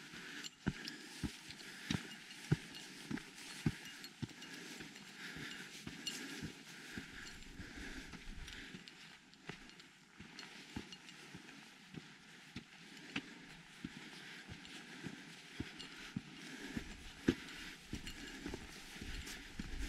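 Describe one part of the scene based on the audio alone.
Footsteps crunch on a dirt trail at a steady walking pace.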